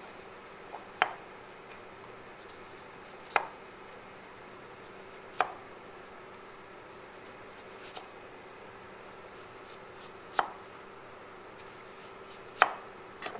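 A knife slices through a potato and taps on a wooden board.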